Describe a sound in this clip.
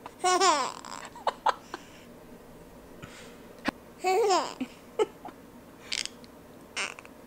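A baby squeals and giggles happily up close.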